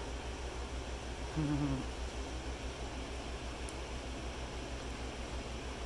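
A guinea pig munches on crunchy vegetables up close.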